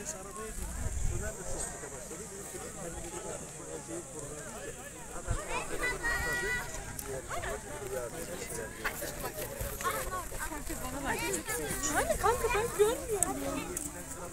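A crowd of men and women chatter outdoors at a distance.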